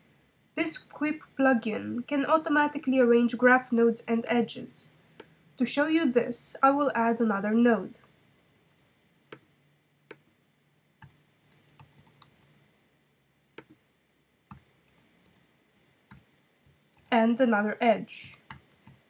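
A young woman speaks calmly and close to a microphone, in short bursts.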